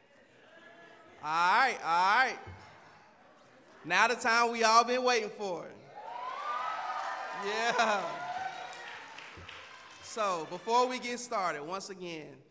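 A man speaks loudly into a microphone, heard through loudspeakers in a large hall.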